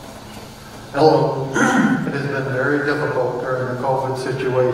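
A man speaks into a microphone over a loudspeaker in a large echoing hall.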